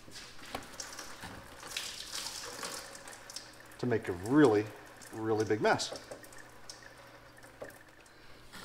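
Oil splashes and pours down onto a hard floor.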